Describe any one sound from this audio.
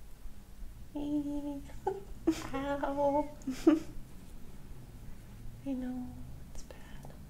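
A woman speaks softly and calmly, close by.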